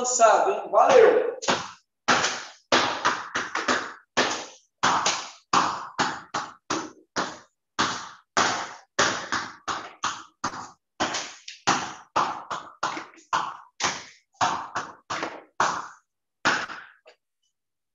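A ball bounces repeatedly on a hard floor in a small echoing room.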